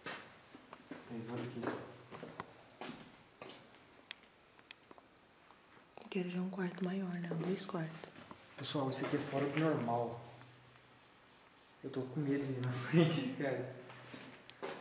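A young man talks quietly nearby.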